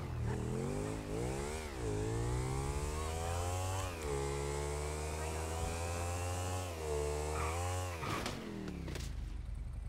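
A motorcycle engine revs and roars, rising and falling in pitch as it shifts gears.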